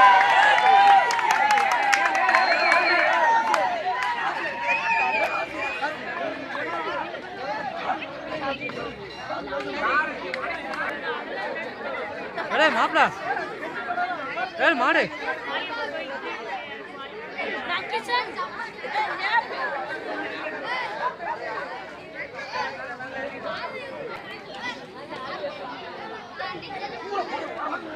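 A large outdoor crowd cheers and shouts loudly.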